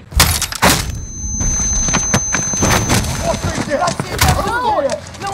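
Gunfire bursts and booms loudly.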